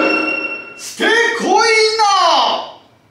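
A man calls out in a loud, drawn-out, sung voice.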